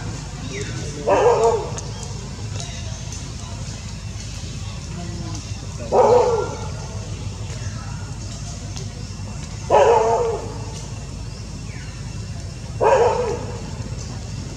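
A baby macaque squeals in short cries.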